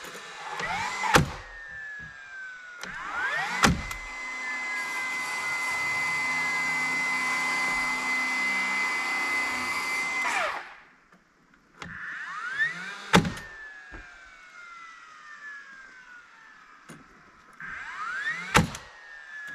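A cordless drill whirs in short bursts, then runs steadily for several seconds.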